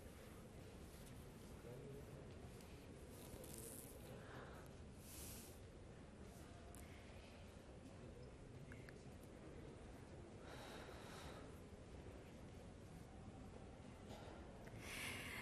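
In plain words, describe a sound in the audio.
Footsteps pad softly on a carpet.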